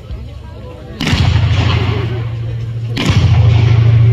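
Loud blasts boom outdoors and echo away.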